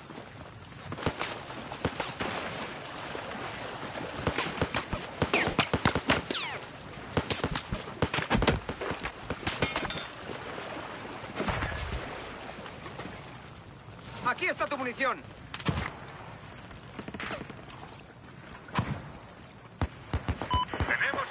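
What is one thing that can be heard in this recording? Rapid gunfire crackles in short bursts.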